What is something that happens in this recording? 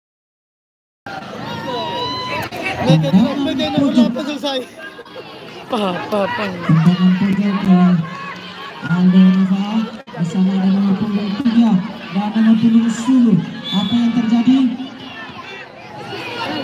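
A crowd of spectators shouts and chatters close by outdoors.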